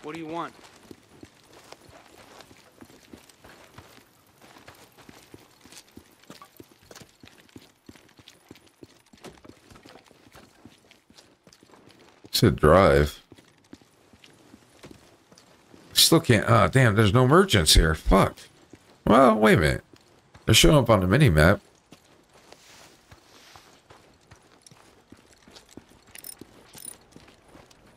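Footsteps run quickly over gravel.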